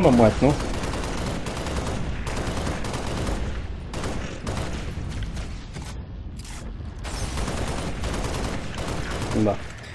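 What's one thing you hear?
A rifle fires rapid bursts.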